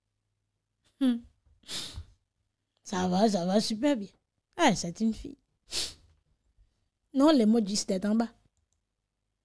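A woman speaks with animation into a close microphone, in short bursts.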